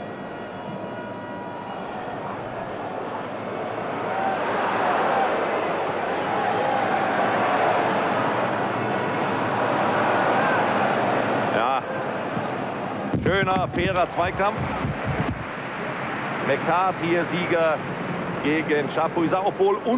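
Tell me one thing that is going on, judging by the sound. A large stadium crowd roars and cheers, swelling loudly and then easing off.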